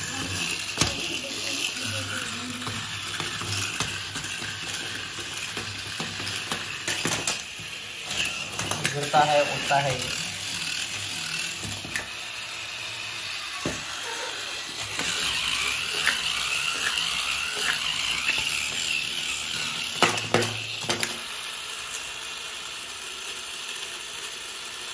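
A small toy motor whirs steadily.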